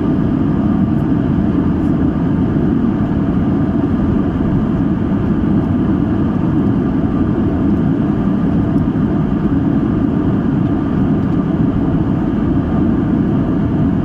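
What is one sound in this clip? Jet engines roar steadily, heard from inside an airplane cabin.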